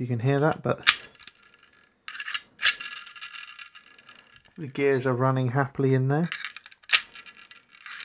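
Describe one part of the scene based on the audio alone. Metal parts click and clatter as they are handled.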